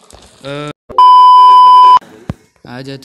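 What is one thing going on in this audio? A steady high electronic beep sounds.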